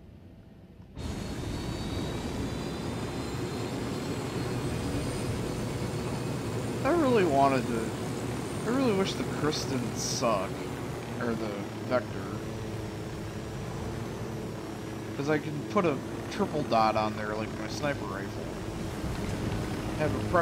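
A helicopter's rotor thumps and whirs steadily.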